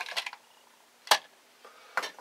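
Metal tools clink as they are set down on a table.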